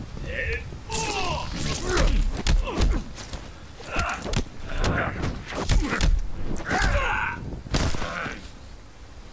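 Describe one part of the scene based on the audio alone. Heavy blows and thuds land in a fight.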